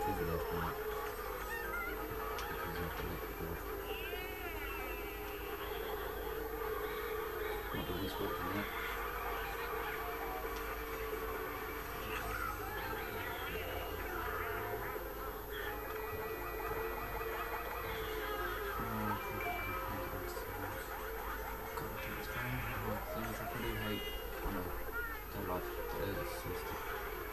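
A racing video game's kart engines hum steadily through a television speaker.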